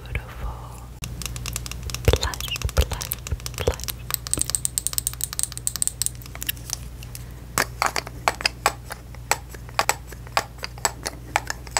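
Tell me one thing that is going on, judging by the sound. Fingernails tap and scratch on a glass bottle, close up.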